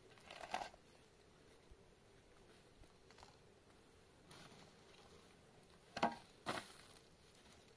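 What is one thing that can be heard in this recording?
A shovel scrapes and scoops dry soil.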